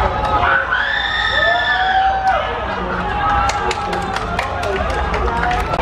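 A man shouts loudly from nearby.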